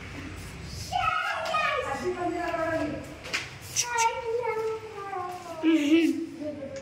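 Children speak and shout excitedly close by.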